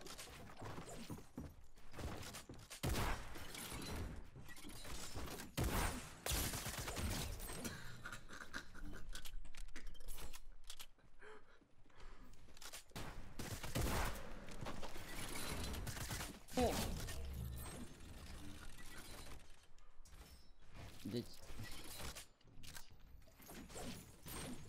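Wooden walls are built with rapid clattering knocks.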